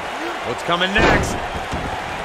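A wrestler's body slams heavily onto the ring mat.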